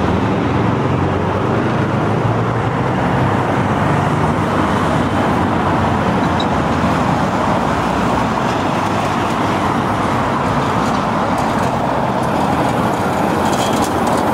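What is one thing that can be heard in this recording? Traffic rumbles past on a city street.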